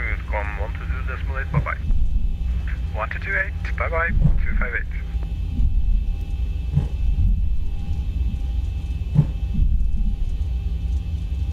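Jet engines rumble low and steady.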